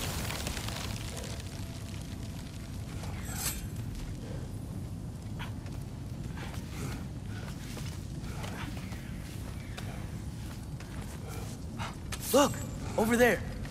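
Footsteps crunch slowly on rocky ground.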